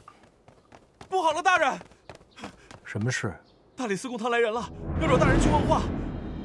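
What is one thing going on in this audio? A young man calls out urgently nearby.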